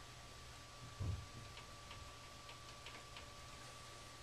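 Wires and connectors click softly as they are handled.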